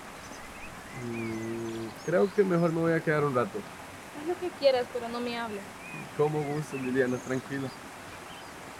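A young woman speaks with feeling close by.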